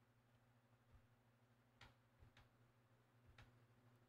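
Controller buttons click softly.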